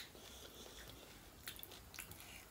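A puffed shell cracks as a finger pokes through it.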